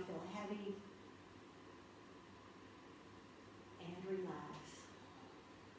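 A woman speaks softly and calmly, close by.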